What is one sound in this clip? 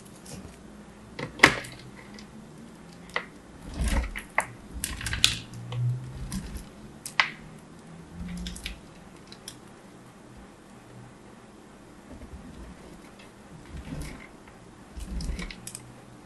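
Crumbly soap rustles and crackles against a grater.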